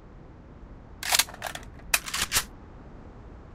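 Gunshots crack in short rapid bursts.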